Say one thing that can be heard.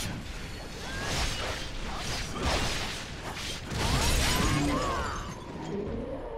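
Blades clash and slash with heavy impacts.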